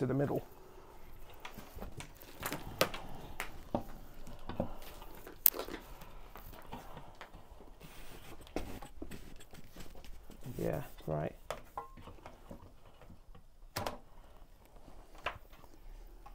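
Metal parts clink and knock as they are fitted together.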